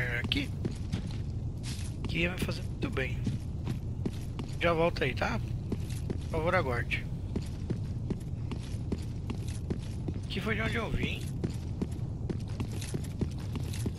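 Heavy footsteps tread steadily over rough ground.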